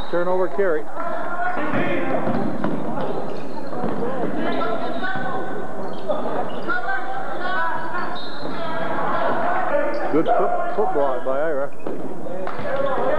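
A crowd of spectators shouts and cheers in a large echoing gym.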